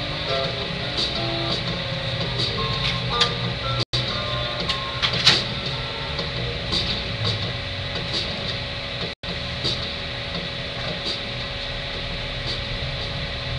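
Scissors snip through hair in short, crisp clicks.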